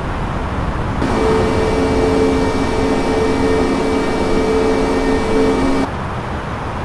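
Jet engines roar close by with a humming whine.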